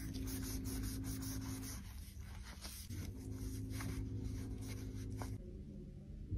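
A blade scrapes and crinkles thin plastic film.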